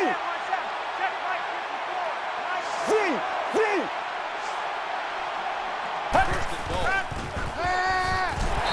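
A stadium crowd murmurs and cheers steadily in the background.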